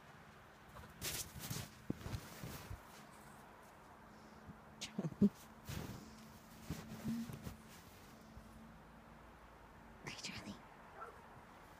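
A plastic snow shovel scrapes and crunches into packed snow.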